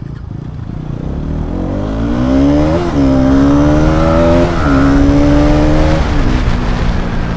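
A motorcycle engine climbs in pitch as it speeds up.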